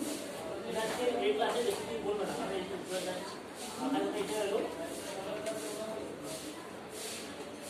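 A man speaks to a room, heard from a distance.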